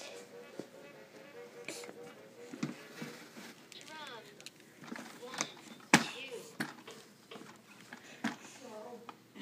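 An electronic musical play toy plays a beeping tune.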